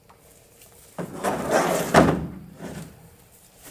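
Boards slide and thump into a truck bed.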